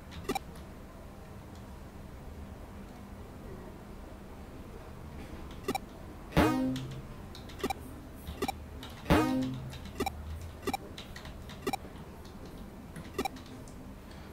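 Short electronic menu blips click now and then.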